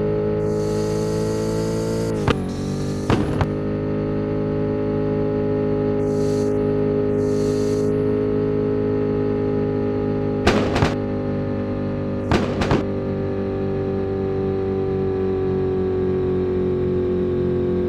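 A sports car engine hums steadily at high speed.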